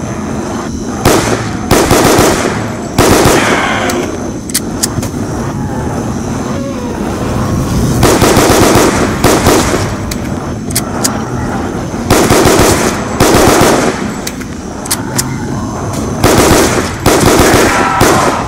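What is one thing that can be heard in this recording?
Gunfire bursts out in loud, rapid rounds.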